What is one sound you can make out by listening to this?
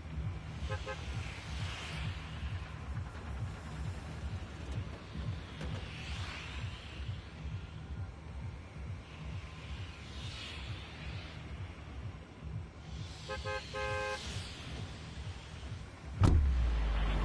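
Wind whooshes past in slow swells.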